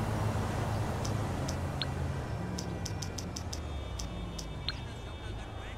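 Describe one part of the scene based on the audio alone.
A mobile phone's menu clicks as it is scrolled.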